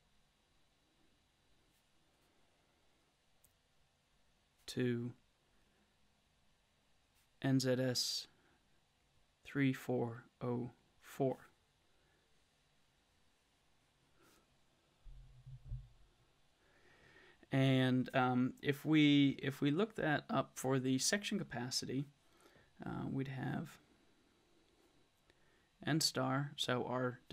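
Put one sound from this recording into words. A felt-tip pen scratches softly on paper.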